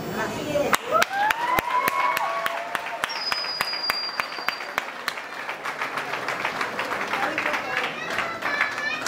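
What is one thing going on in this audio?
People clap their hands in rhythm in a large echoing hall.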